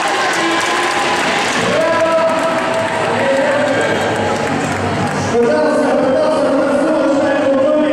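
A large crowd cheers and applauds in an echoing arena.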